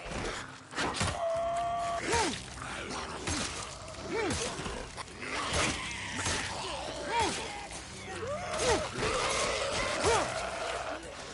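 A creature growls and snarls close by.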